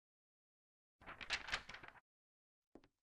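A sheet of paper rustles as it folds.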